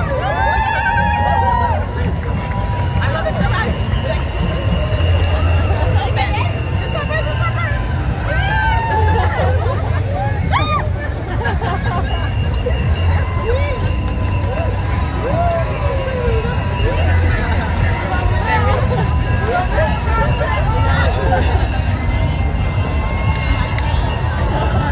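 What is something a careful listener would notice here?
A crowd of marchers chatters and cheers outdoors.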